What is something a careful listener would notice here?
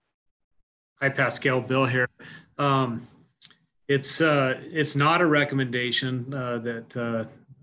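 An older man speaks calmly through an online call.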